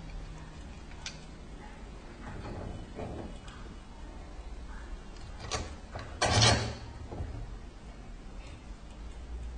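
Metal parts click and knock as a handle is fitted onto a hand-operated oil press.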